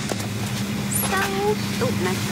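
A young woman speaks close by, softly.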